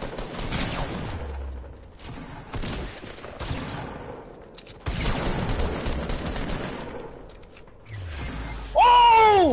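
Game gunfire and crashing bursts sound in quick succession.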